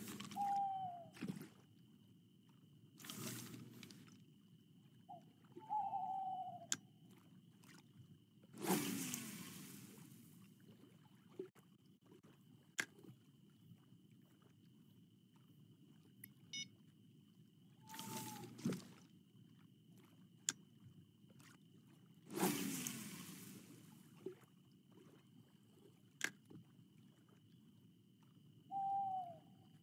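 Water laps gently at a lakeshore.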